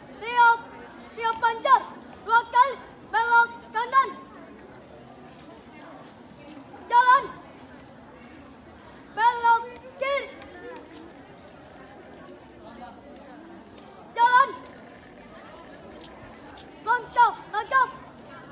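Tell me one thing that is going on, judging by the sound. A young man shouts marching commands loudly outdoors.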